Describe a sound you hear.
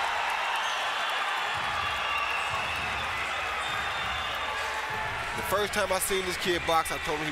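A large crowd murmurs and cheers in a big hall.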